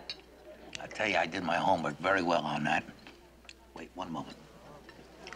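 A middle-aged man speaks nearby in a raspy, musing voice.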